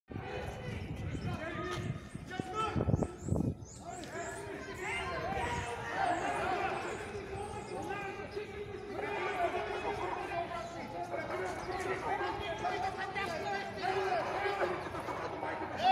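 A crowd of people chants and shouts loudly outdoors.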